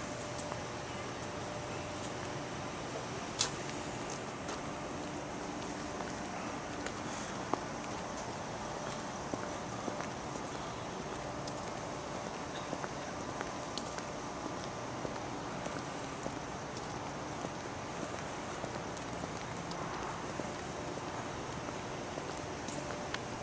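Outdoors, a steady hiss of distant traffic and city noise fills the air.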